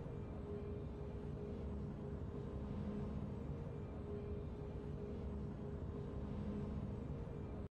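Soft, steady game music plays.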